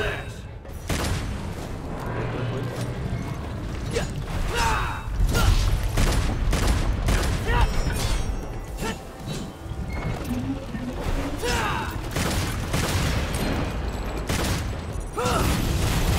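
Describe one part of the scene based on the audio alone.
Sword slashes and heavy impacts clash repeatedly in a game fight.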